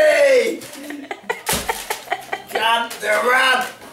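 Cardboard packaging rustles and tears.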